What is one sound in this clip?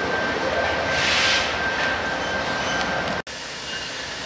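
A freight car rolls past, its wheels clattering on the rails.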